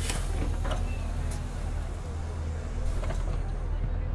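A bus door hisses open.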